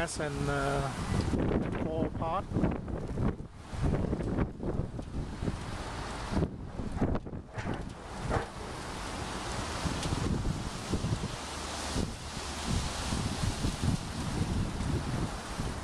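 The blades of a small wind turbine whirl around with a soft rattle.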